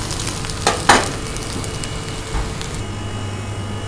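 Egg sizzles in hot oil in a wok.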